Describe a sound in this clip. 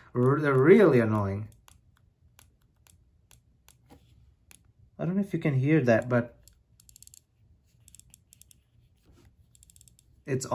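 A small plastic button clicks softly under a finger.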